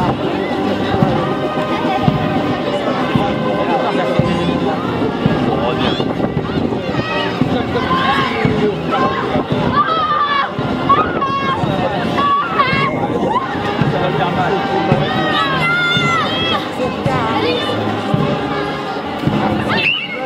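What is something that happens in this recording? A crowd of adults and children chatters outdoors all around.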